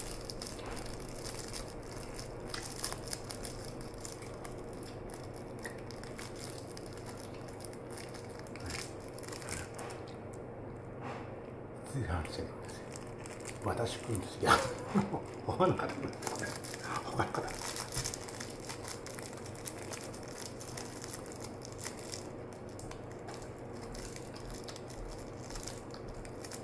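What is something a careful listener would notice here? A small plastic case rattles and clicks in a man's hands.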